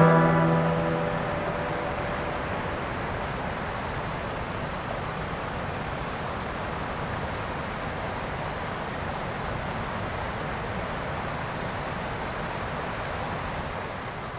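Water rushes steadily over rocks outdoors.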